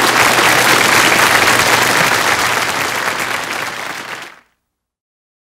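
A large audience applauds and cheers, then the applause fades away.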